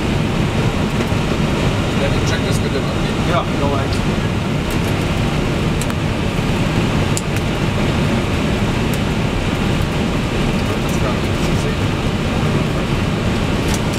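Aircraft engines drone steadily from within a cockpit.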